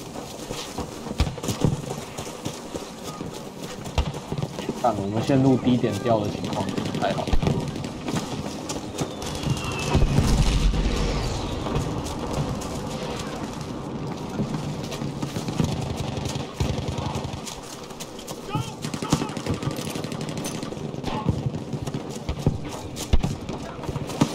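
Gunfire cracks and booms across a battlefield.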